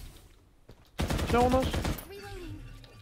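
A rifle fires a quick burst of shots nearby.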